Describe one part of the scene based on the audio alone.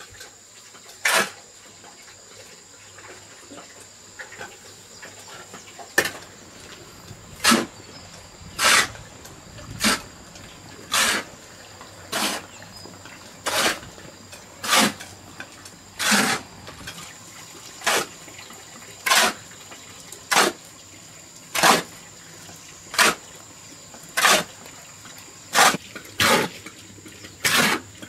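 A shovel scrapes and digs into a pile of sand and cement, over and over.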